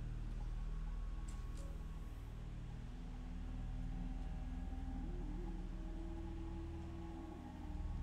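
Plastic toy bricks click and rattle as a hand sorts them.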